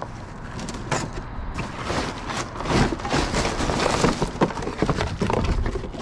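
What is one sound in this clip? Cardboard boxes rustle and scrape as they are shifted close by.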